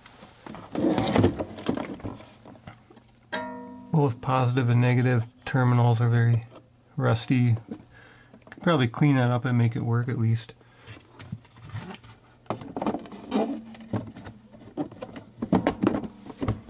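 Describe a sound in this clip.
A plastic case knocks and clatters as hands lift and turn it.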